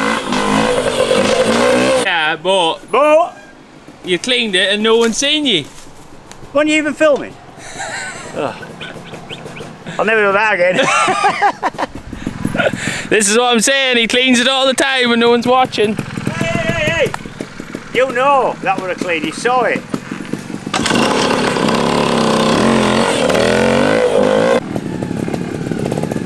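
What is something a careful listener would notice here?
A motorbike engine revs and putters nearby.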